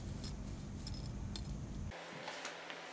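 A dog sniffs and rustles through grass.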